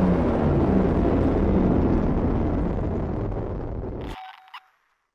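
A deep spacecraft engine rumbles steadily, then cuts off abruptly.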